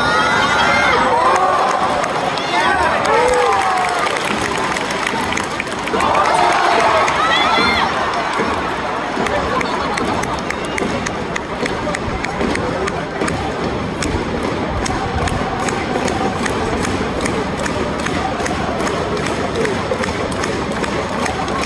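A large crowd murmurs and cheers in an open stadium.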